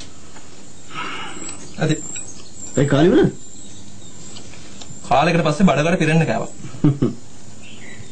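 A second man answers calmly close by.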